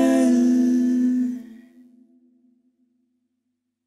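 Women sing together in harmony into microphones, holding a final note that fades out.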